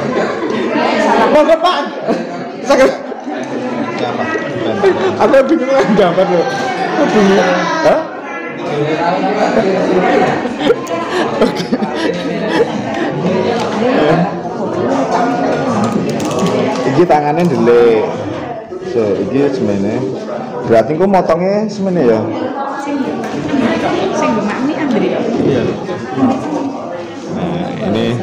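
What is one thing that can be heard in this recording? Several men chat in the background.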